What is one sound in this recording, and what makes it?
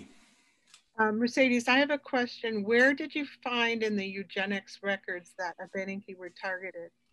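An older woman speaks steadily over an online call.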